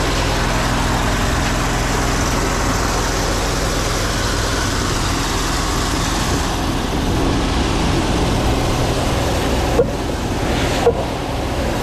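A high-pressure water jet hisses and sprays into a drain.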